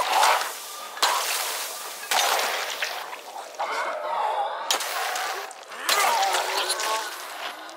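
A heavy weapon strikes flesh with wet thuds.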